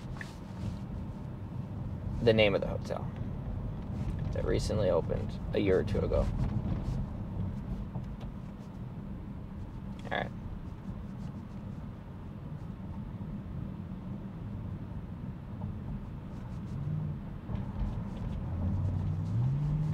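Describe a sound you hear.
A car drives along with a steady low road rumble inside the cabin.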